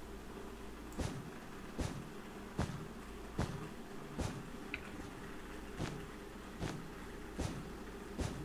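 Blocks are placed with short soft thuds, one after another at a steady pace.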